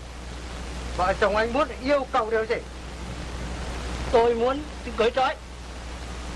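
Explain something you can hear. A man shouts sharply nearby.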